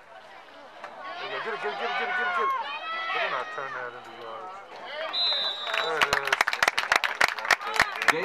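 Young women chant a cheer loudly.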